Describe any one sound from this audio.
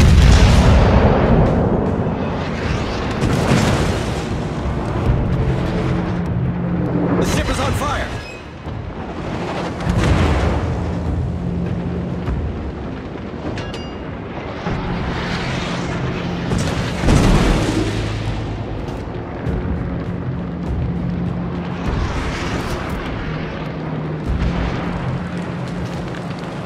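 Heavy naval guns fire in loud booming blasts.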